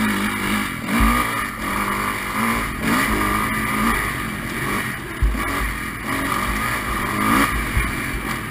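A dirt bike thumps and rattles over rough ground.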